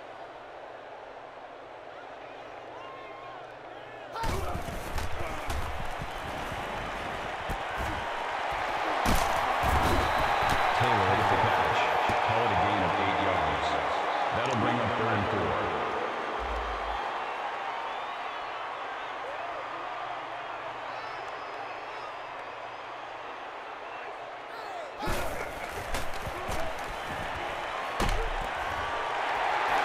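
A large stadium crowd roars, swelling and then easing off.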